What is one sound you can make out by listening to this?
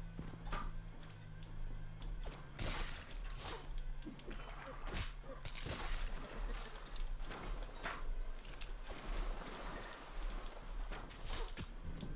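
Game weapons fire with short zaps and clicks.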